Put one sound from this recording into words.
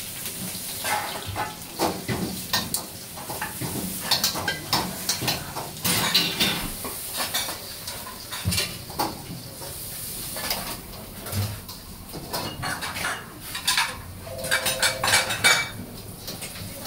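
A metal ladle clanks and scrapes against a wok.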